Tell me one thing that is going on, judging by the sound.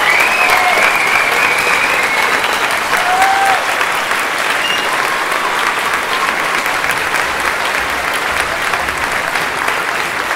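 A large audience applauds loudly in a big hall.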